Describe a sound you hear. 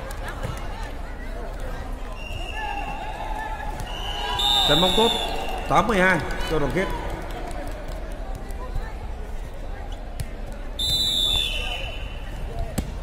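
Players' hands strike a volleyball with sharp smacks in a large echoing hall.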